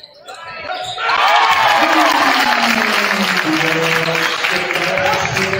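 A crowd cheers and shouts loudly in a large echoing gym.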